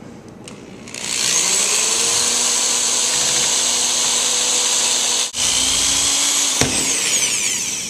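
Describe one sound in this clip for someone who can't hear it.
A power drill whirs loudly at a steady pitch, then winds down.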